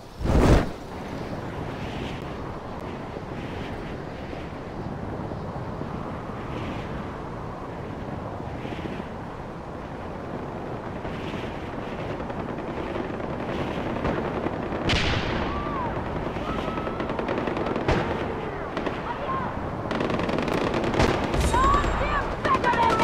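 Wind rushes past a hang glider in flight.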